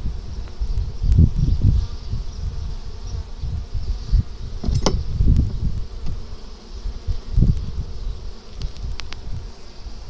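Wooden hive boxes knock and scrape as they are handled.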